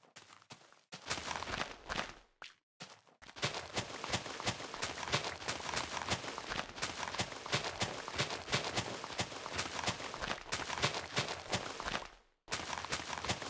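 A shovel digs into dirt with quick, repeated crunching.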